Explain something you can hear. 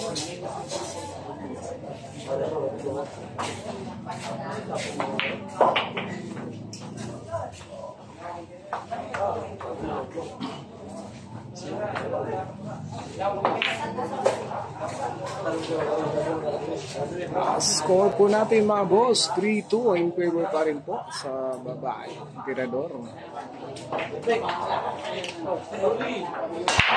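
Men talk and murmur nearby in a small crowd.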